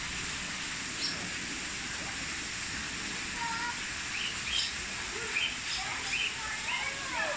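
Birds chirp softly in the trees.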